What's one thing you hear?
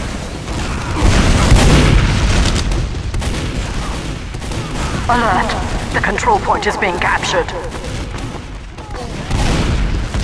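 A shotgun fires in short blasts.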